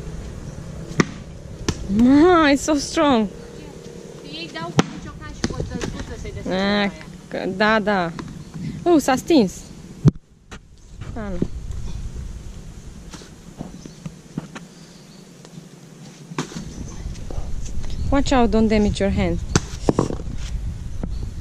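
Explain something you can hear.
Coconuts knock against the ground and stones.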